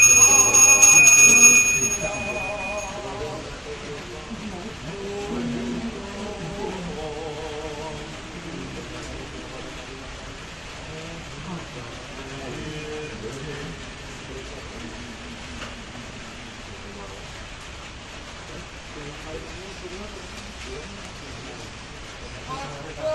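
An elderly man chants a prayer in a steady, wavering voice nearby.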